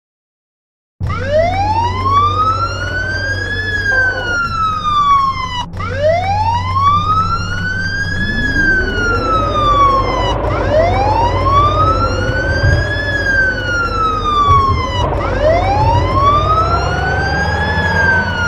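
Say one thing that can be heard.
A fire engine's motor rumbles steadily.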